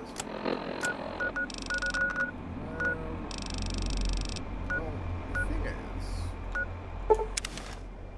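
Short electronic beeps and clicks sound as a device menu is used.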